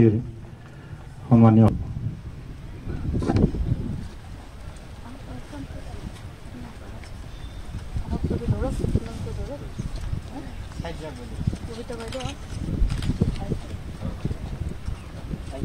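A crowd of men and women murmur and talk nearby outdoors.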